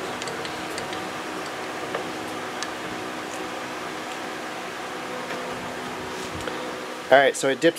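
A metal lathe hums steadily as it runs.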